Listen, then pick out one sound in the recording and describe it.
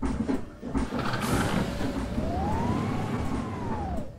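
Bus doors hiss and thud shut.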